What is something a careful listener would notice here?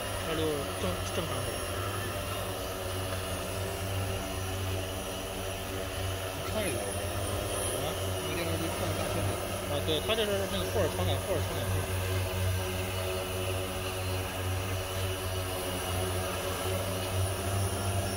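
A drone's propellers buzz steadily in the air outdoors.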